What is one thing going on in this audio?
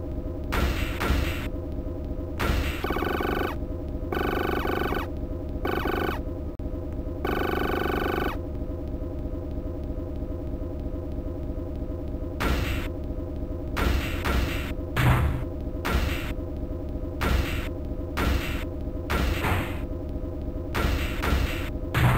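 Blows land with heavy, crunching thuds in quick bursts.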